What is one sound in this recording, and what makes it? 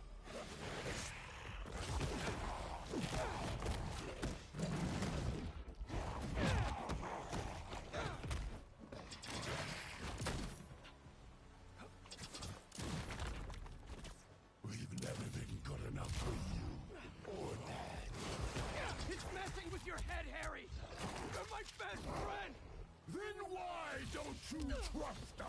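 Heavy blows thud and crack in a fight.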